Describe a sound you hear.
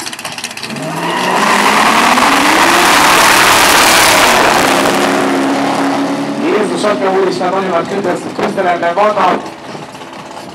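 Powerful car engines roar loudly as cars race away.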